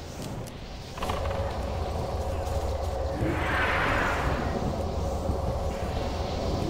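Magic spells whoosh and crackle in a fantasy battle.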